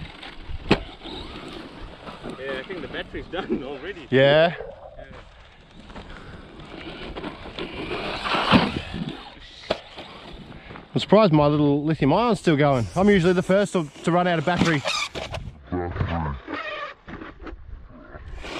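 A small electric motor whirs as a toy car races over dirt.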